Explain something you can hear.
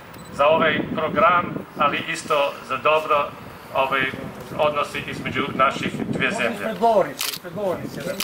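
An elderly man speaks calmly through a microphone outdoors.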